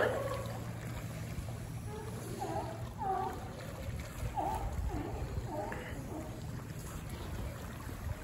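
Water splashes as sea lions swim.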